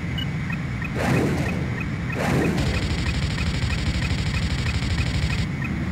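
A missile launches with a whoosh.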